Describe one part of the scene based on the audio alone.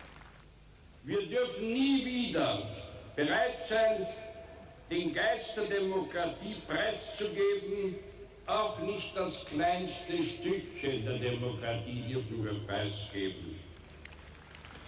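An elderly man speaks slowly and gravely through a loudspeaker microphone.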